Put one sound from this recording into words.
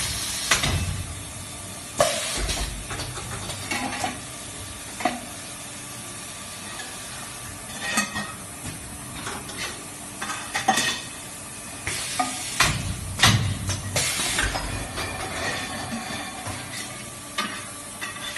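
Metal parts clank and knock.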